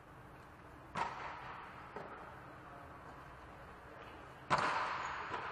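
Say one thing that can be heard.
A volleyball is hit with sharp smacks in a large echoing hall.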